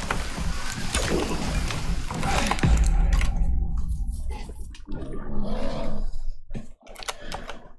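A bear roars loudly and growls.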